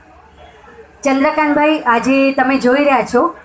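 A young woman sings loudly into a microphone over a loudspeaker.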